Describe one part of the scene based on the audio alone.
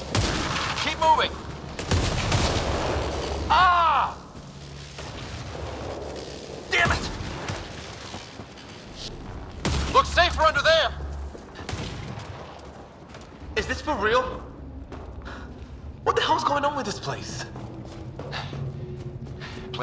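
Footsteps run over rocky ground.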